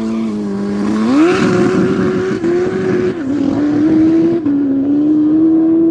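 A motorcycle speeds off and its engine fades into the distance.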